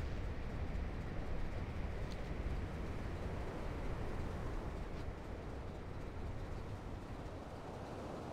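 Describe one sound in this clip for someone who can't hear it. Wind rushes steadily past a flying mount.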